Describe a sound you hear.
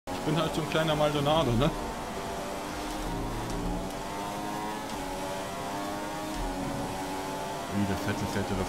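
A racing car engine whines loudly at high revs, shifting up through the gears.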